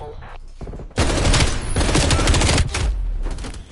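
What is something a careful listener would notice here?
A rifle fires a rapid burst of loud shots.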